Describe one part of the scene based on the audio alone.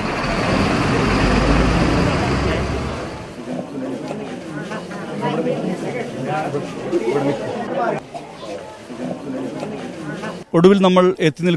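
A crowd of men talk and shout outdoors.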